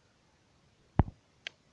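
A small plastic button clicks.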